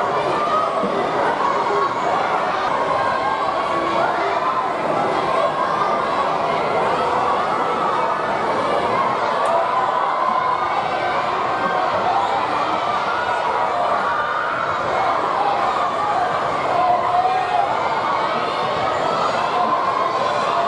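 A crowd of young fans chatters and calls out nearby, outdoors.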